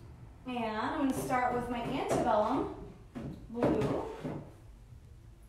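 A young woman talks casually, close by.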